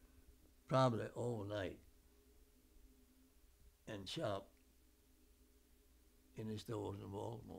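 An elderly man speaks slowly and calmly, close by, with long pauses.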